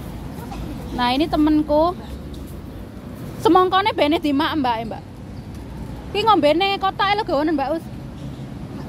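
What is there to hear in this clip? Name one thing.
A young woman speaks close by in short, lively bursts.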